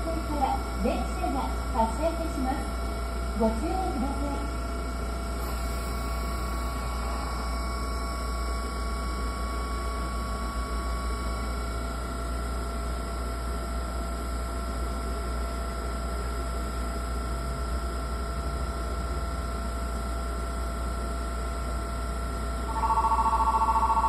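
A train idles with a steady low hum.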